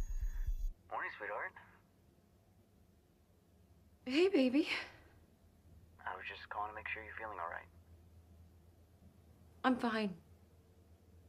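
A woman speaks softly into a phone, close by.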